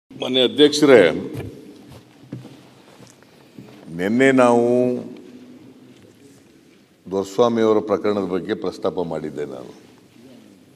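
An elderly man speaks loudly through a microphone in a large hall, with pauses.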